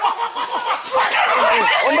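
A man shouts loudly outdoors.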